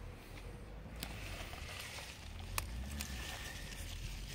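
Leaves rustle as peppers are picked from a plant.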